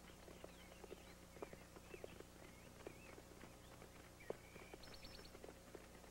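Horses' hooves thud on grass as riders gallop.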